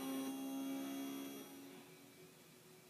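A car engine hums through television speakers.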